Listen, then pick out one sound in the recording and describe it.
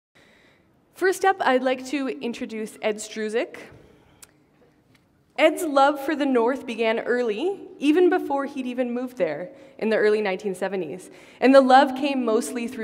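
A young woman speaks calmly through a headset microphone in an echoing hall.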